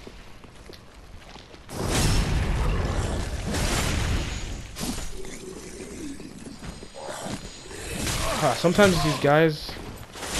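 A sword swings and strikes bones with heavy slashing blows.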